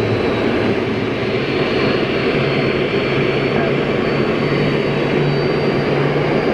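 Jet engines roar loudly and steadily nearby, outdoors.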